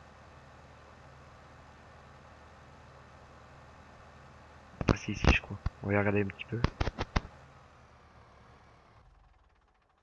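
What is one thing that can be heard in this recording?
A tractor engine hums steadily at low revs.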